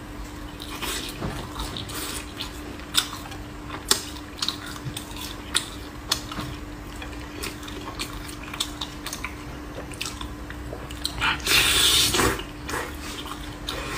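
Sticky meat tears apart with wet, squelching sounds close up.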